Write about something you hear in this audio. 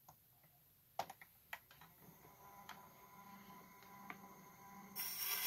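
A gramophone tonearm clicks and knocks as it is handled.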